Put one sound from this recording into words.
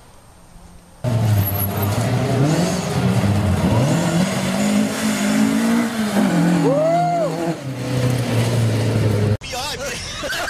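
A rally car engine roars and revs loudly as the car speeds past.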